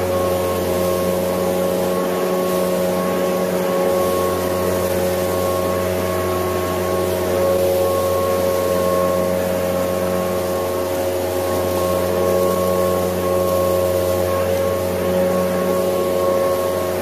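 Dry leaves rustle and scatter across the ground.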